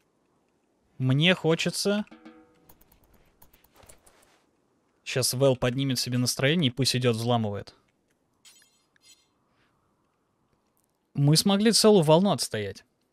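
A young man talks with animation into a close microphone, in short bursts.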